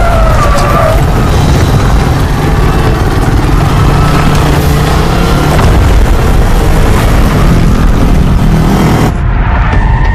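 A motorcycle engine rumbles and revs.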